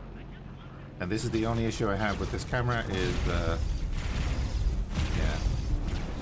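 Laser cannons fire in rapid bursts.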